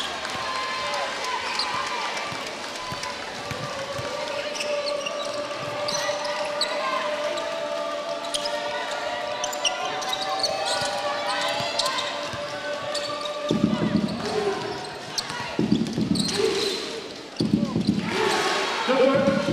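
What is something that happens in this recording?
A large indoor crowd murmurs and cheers in an echoing arena.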